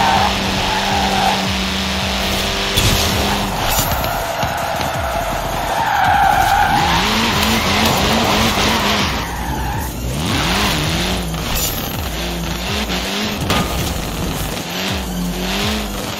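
A rally car engine roars at high speed.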